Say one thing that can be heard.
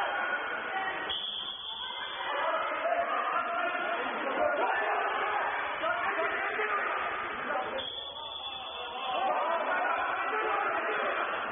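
Men shout and call out to each other, echoing around the hall.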